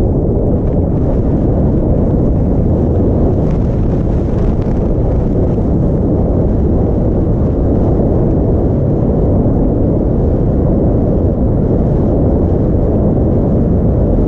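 Skis hiss steadily over soft snow.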